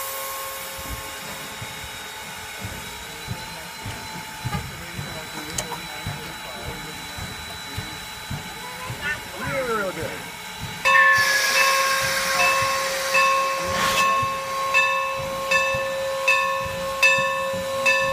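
A steam locomotive idles with a steady whine close by.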